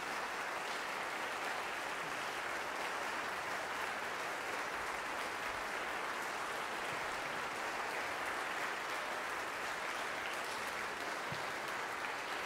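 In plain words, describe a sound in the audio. A crowd applauds steadily in a large room.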